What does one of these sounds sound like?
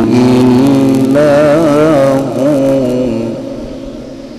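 A young man chants in a long, wavering voice through a microphone, and the reverberating sound slowly dies away.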